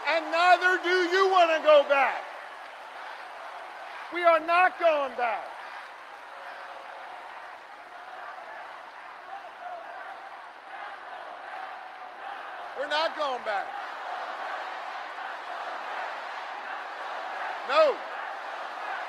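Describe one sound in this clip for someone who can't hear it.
A man shouts forcefully into a microphone over loudspeakers in a large echoing hall.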